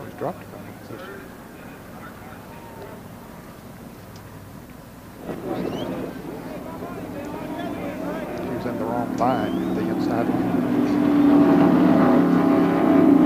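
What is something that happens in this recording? Race car engines rumble as the cars roll slowly past.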